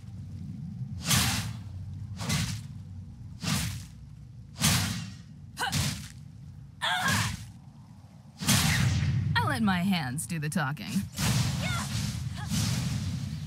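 Short whooshing game sound effects burst again and again.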